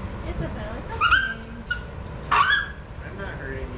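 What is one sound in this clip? A dog yelps sharply a few times nearby.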